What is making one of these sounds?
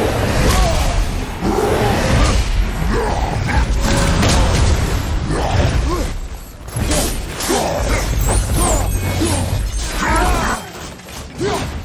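Heavy blows and crashes thud and boom.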